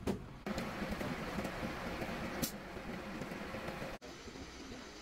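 Water trickles and splashes onto the ground.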